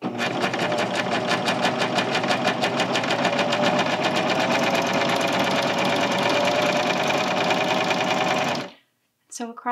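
A sewing machine runs fast with a rapid, steady clatter, then stops.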